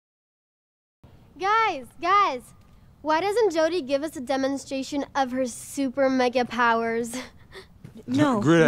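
A young woman calls out loudly, then speaks teasingly.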